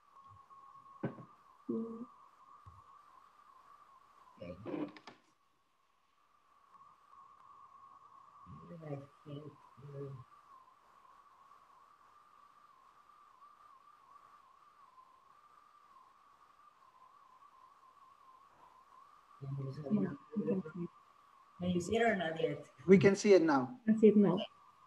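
A woman speaks calmly and haltingly over an online call.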